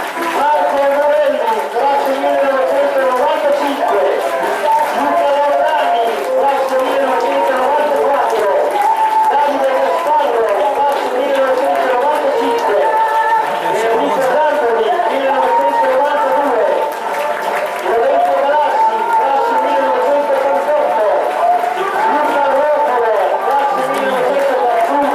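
A group of young men sing and chant together outdoors.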